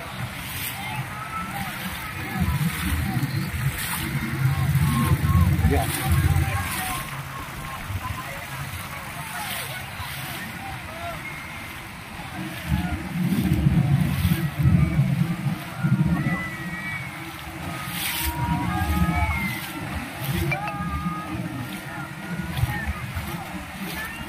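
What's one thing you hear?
Wind buffets the microphone outdoors on open water.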